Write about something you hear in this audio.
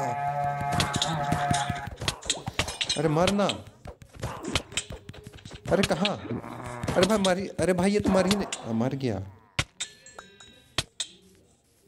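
A sword strikes a creature with quick thuds.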